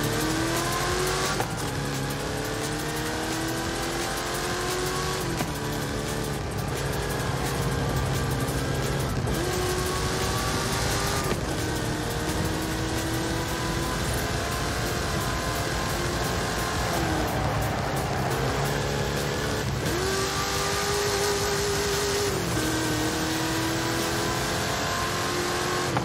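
Tyres hum on a smooth track.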